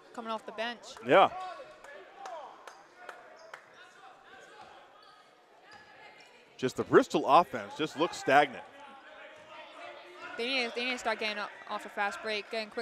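Young men shout and call out in a large echoing gym.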